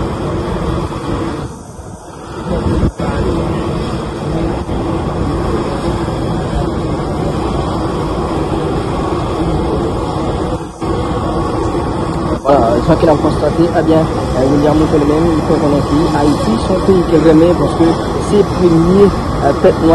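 Wind blows across an open outdoor space, rumbling steadily.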